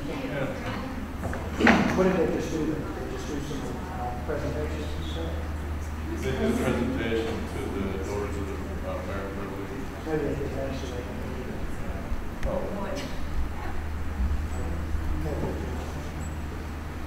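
A man talks at a distance in an echoing room.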